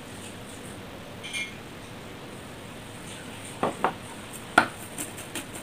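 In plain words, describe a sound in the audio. A bowl clinks as it is set down on a table.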